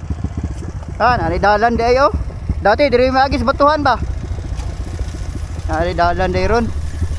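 A motorcycle engine revs up sharply in short bursts.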